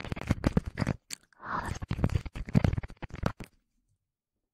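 Soft brushes scratch and rustle against a microphone.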